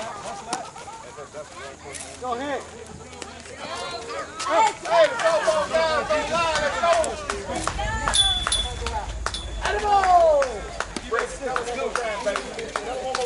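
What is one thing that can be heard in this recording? Several men and women talk and call out nearby, outdoors.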